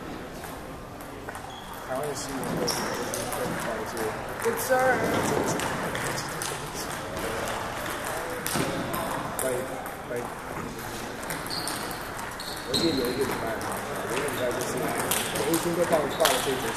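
A crowd of young people chatters in a large echoing hall.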